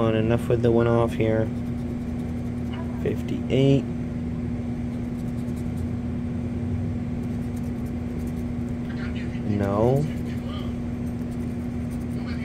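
A pen taps and scrapes lightly on a paper card.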